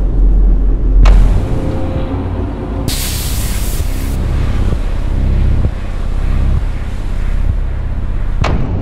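Wind blows hard through a snowstorm.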